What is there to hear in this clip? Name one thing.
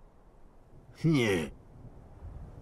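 An elderly man speaks in a low, menacing voice.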